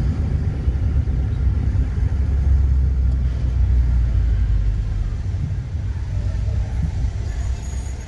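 Traffic hums on a wet street outdoors.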